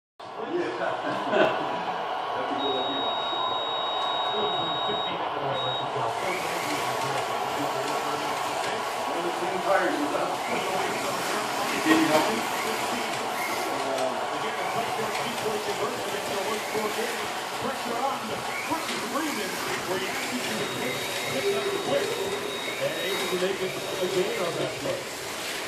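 Small slot cars whine as they race around a track.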